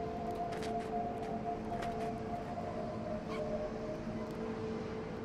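A fox's paws crunch softly through snow.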